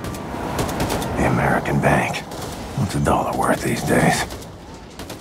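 A machine gun fires rapid bursts of shots.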